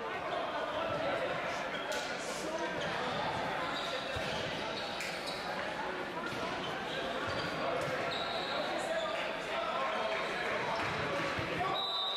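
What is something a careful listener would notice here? A crowd of players and spectators chatters and calls out in a large echoing hall.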